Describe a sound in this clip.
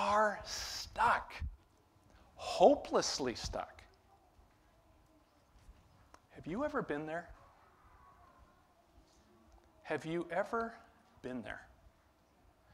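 A man speaks expressively into a microphone, pausing between phrases.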